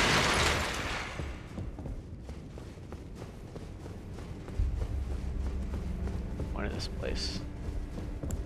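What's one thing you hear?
Footsteps tap steadily across a wooden floor.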